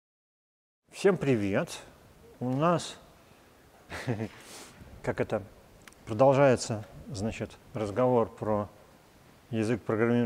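An elderly man speaks calmly, heard through a microphone.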